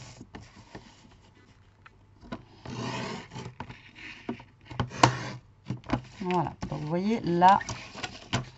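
Paper rustles and taps as it is handled.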